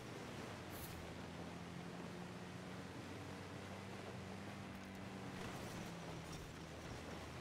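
Tyres crunch and hiss through snow.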